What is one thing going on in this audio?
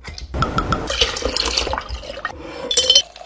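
Liquid pours and splashes into a glass jar.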